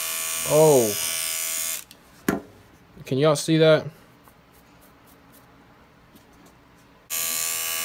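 Electric hair clippers buzz steadily up close.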